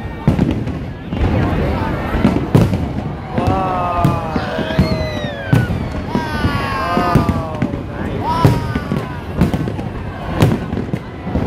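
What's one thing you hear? A crowd of people murmurs and cheers nearby, outdoors.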